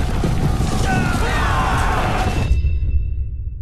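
Lightning crackles and booms.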